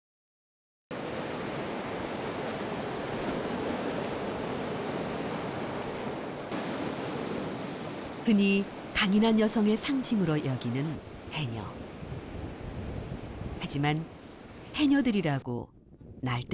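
Waves crash and roar against rocks outdoors.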